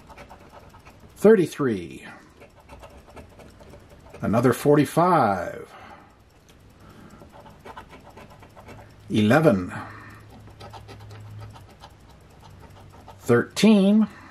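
A scraper scratches the coating off a scratch-off lottery ticket.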